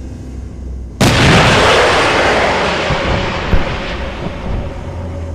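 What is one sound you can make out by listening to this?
A missile launches with a sudden blast and roars away, fading.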